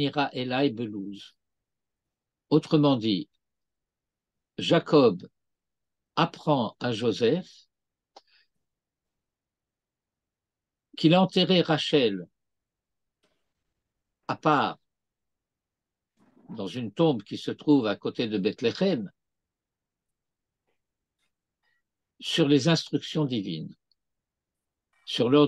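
An elderly man reads aloud in short bursts over an online call, with pauses between phrases.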